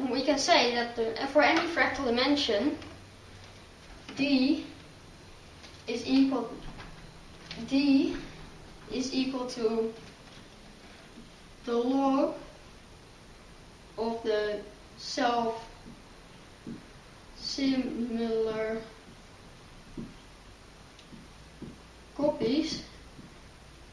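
A boy speaks calmly and close by, in short phrases with pauses.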